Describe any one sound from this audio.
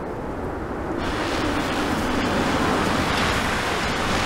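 A car engine rumbles as a car pulls up.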